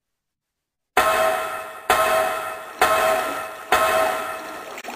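Metal ladder rungs clang in a steady rhythm.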